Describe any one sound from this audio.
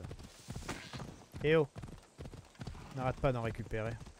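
Horse hooves clop on a dirt path.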